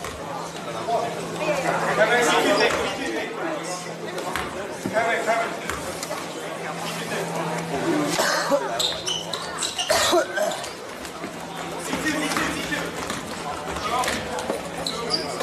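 Voices of spectators and players chatter in a large echoing gym.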